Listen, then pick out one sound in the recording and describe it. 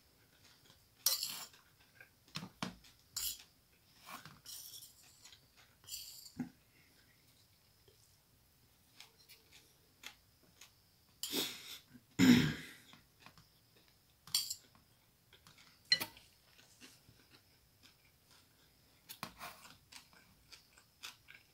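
A man chews food with loud, wet mouth sounds close by.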